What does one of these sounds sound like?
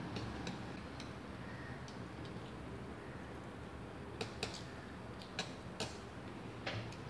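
A boy chews food.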